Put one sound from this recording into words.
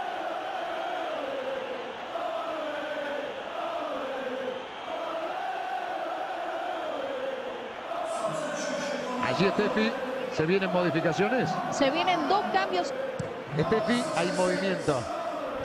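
A large stadium crowd sings and chants.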